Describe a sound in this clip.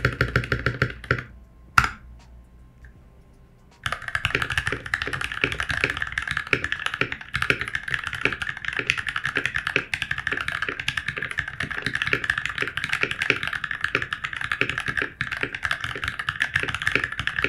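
Mechanical keyboard keys clack quickly and steadily under fast typing.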